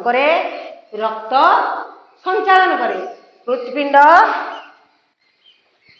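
A woman speaks loudly and with animation, close by.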